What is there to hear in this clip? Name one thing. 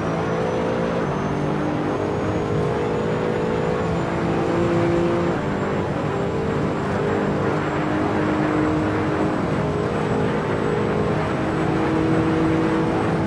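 A racing car engine roars at high revs, its pitch climbing and dropping with each gear change.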